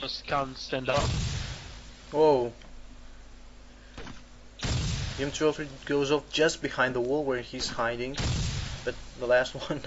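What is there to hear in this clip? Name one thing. A shell explodes with a deep boom.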